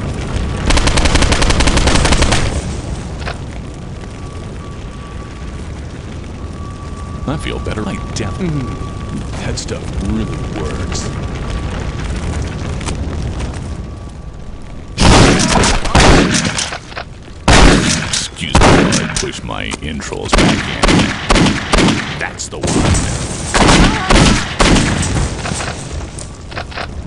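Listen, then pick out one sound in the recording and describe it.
Gunfire bangs out in loud, rapid bursts.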